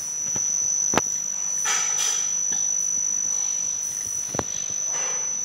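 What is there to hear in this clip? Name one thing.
A glass clinks sharply against a hard surface.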